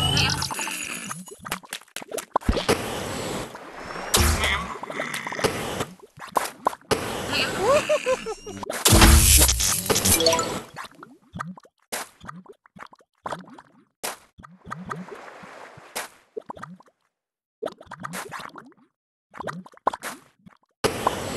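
Cartoonish game sound effects pop and chime.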